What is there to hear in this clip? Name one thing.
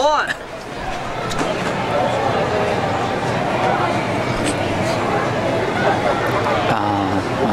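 A young woman plays a harmonica close by.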